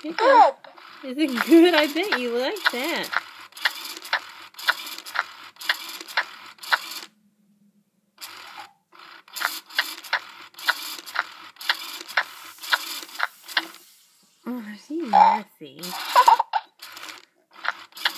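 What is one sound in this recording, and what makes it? A plastic spoon clicks and scrapes against a toy doll's mouth.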